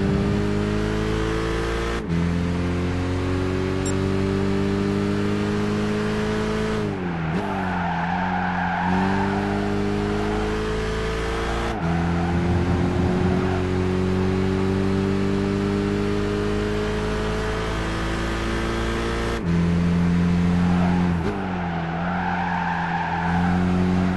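A racing car engine revs high and climbs through the gears.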